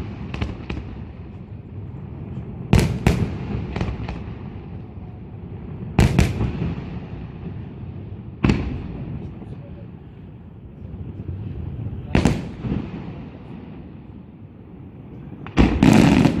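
Fireworks crackle and sizzle as they burst.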